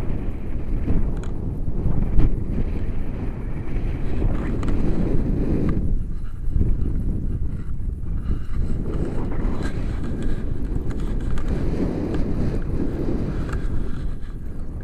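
Strong wind rushes and buffets a close microphone outdoors.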